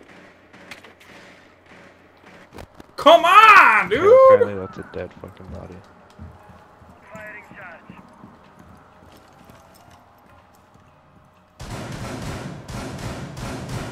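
Gunshots ring out in short, loud bursts.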